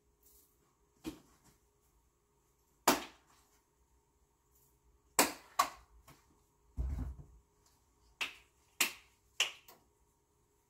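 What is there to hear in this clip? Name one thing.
Dishes clatter and knock on a counter.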